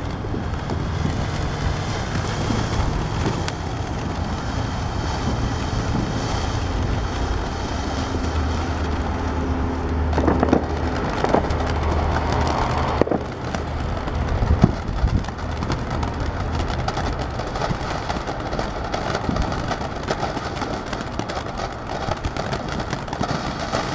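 A firework fountain hisses and crackles as it sprays sparks.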